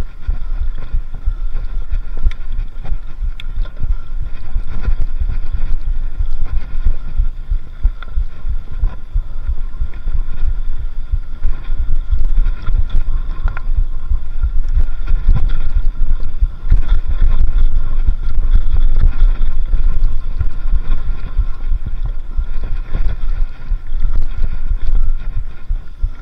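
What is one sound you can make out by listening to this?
Bicycle tyres rumble over a bumpy dirt trail.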